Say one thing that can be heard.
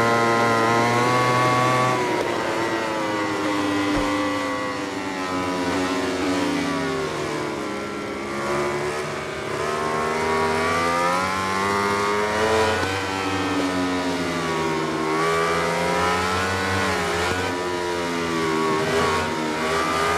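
A racing motorcycle engine revs high, its pitch rising and falling through gear changes and corners.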